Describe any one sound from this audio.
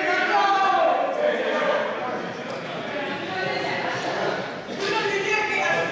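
Many children chatter and call out in a large echoing hall.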